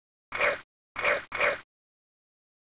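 Short electronic beeps sound, one after another.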